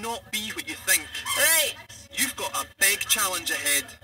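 A woman speaks calmly to a group of children.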